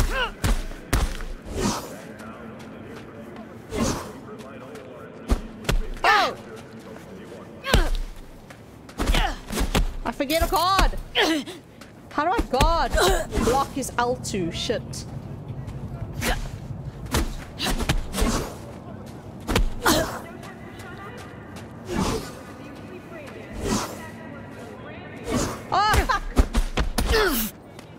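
Fists thump against a body in a fight.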